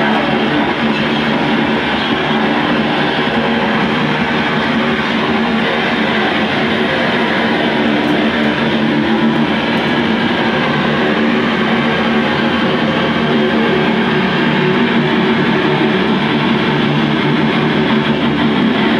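A band plays loud distorted electric guitars in an echoing room.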